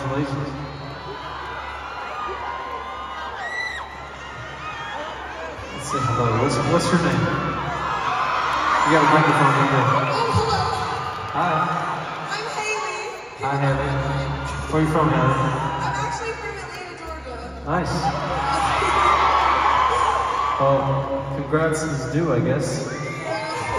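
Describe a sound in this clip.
A large crowd sings along loudly in a big echoing arena.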